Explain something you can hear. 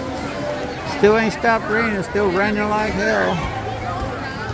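Children shout and squeal while playing in the water.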